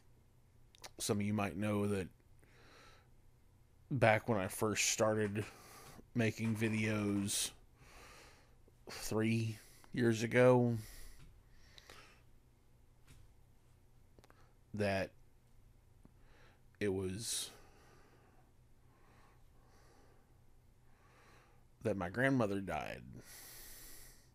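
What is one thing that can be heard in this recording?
A middle-aged man speaks calmly and closely into a microphone, in short bursts with pauses.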